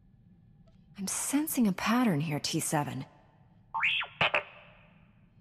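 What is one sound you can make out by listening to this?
A small robot chirps and warbles in quick electronic beeps.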